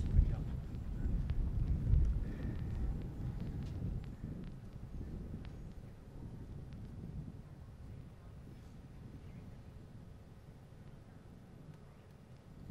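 Wind rumbles outdoors, strongest at first and slowly easing.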